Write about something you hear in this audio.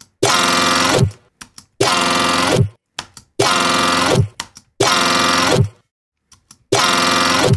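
A short buzzy synth sample plays over and over, each burst ending with a falling pitch.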